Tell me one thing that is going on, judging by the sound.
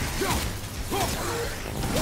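A fiery explosion bursts with a deep rumble.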